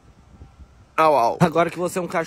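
A young man imitates a dog's bark.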